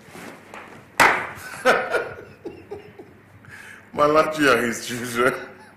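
An elderly man laughs loudly and heartily close by.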